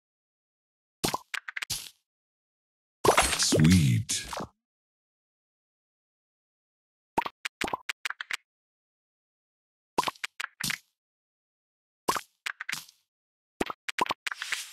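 Short game effects click and pop as candies drop into place.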